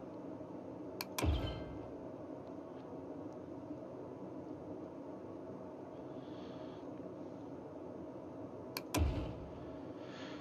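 Short computer game interface clicks sound, each followed by a soft, low thud.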